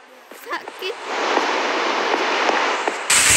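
Lava bubbles and crackles close by.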